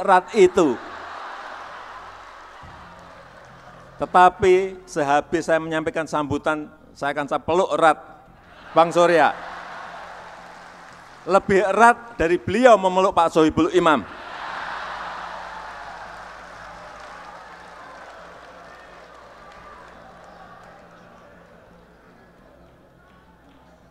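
A crowd laughs and cheers, then slowly quiets.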